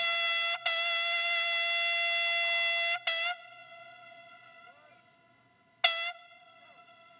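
A bugle sounds long, loud held notes that echo and fade across an open square.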